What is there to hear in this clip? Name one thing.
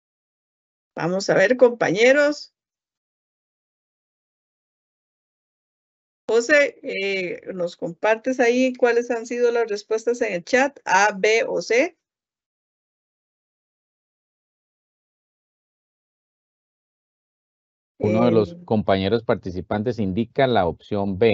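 A woman speaks calmly through an online call microphone, in short bursts with pauses.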